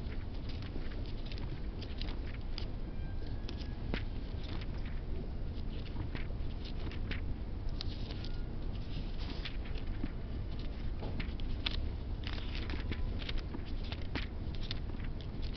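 Paper rustles and crinkles close by as pages are handled.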